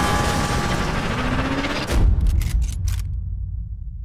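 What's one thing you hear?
A truck explodes with a loud blast.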